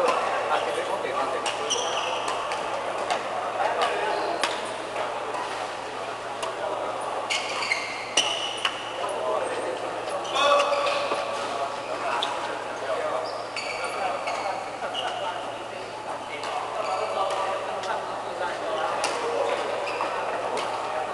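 Rackets smack shuttlecocks in sharp, quick hits in a large echoing hall.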